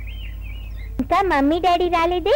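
A woman sings loudly.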